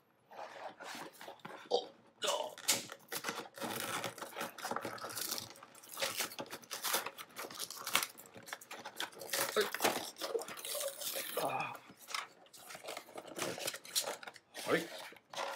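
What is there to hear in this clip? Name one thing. Stiff cardboard and plastic packaging crinkles and tears as hands pull it open.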